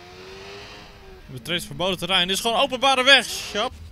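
A motorcycle engine revs.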